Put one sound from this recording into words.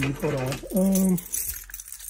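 Keys jingle in a hand.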